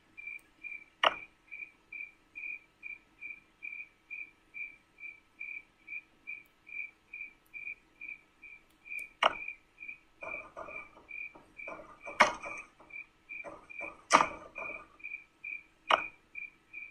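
A fingertip taps on a glass touchscreen now and then.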